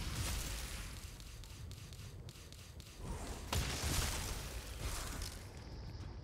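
A heavy weapon swings with whooshing hits.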